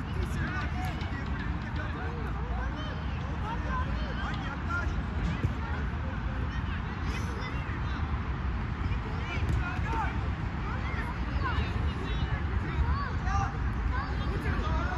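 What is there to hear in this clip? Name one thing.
Children shout to each other in the distance.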